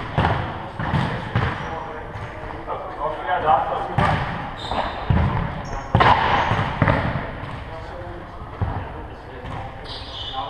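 A ball thuds against the floor and is kicked, echoing in a large hall.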